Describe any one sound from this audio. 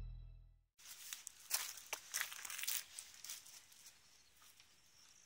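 Footsteps crunch on a gravel path close by.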